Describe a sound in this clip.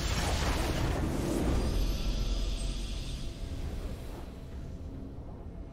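A triumphant video game fanfare plays and fades.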